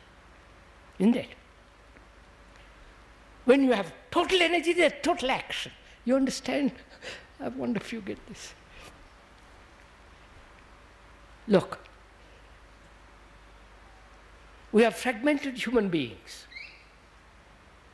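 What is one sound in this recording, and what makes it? An elderly man speaks calmly and haltingly into a close microphone.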